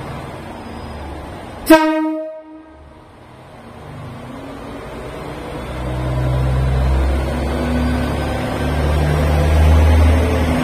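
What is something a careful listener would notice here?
A diesel train engine rumbles low as the train pulls in, growing louder.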